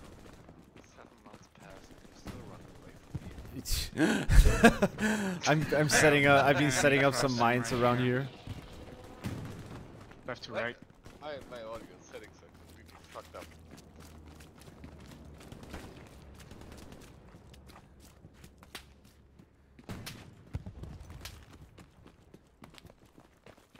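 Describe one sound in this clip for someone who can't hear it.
Footsteps crunch on rubble and gravel.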